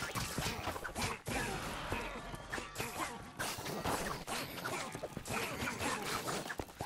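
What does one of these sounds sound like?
Video game combat sounds clash and thud.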